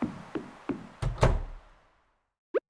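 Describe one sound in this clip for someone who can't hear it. A wooden door opens and shuts.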